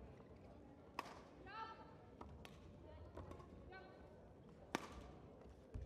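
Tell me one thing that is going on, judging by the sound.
A shuttlecock is struck sharply with a racket.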